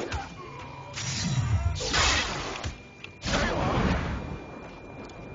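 A fiery blast roars loudly, then dies away.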